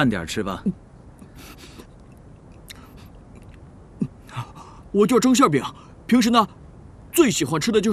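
A man speaks calmly and casually nearby.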